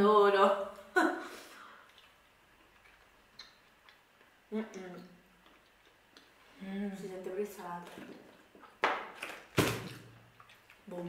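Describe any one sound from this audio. Crisp biscuits crunch as they are bitten and chewed.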